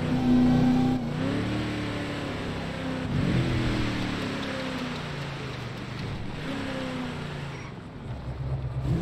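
A car engine revs and roars as the car speeds along and slows down.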